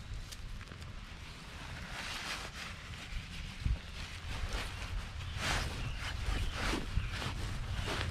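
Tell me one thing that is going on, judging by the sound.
A cloth bag rustles as things are stuffed into it.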